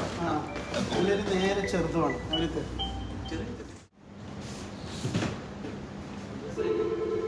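Several men talk with animation close by.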